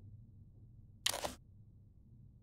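A short game menu sound swishes as an item view closes.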